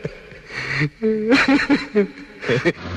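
A man speaks with a smile.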